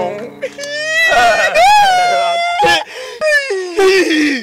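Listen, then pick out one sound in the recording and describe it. A man laughs loudly, close by.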